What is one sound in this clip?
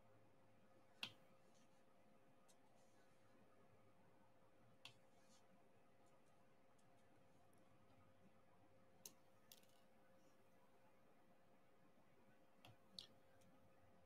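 Small plastic beads click softly as a pen tool presses them into place.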